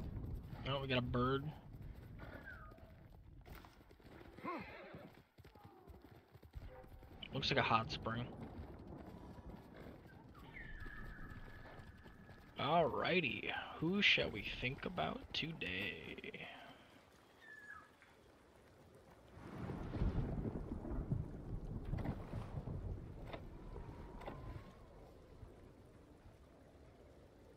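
A horse gallops over grass.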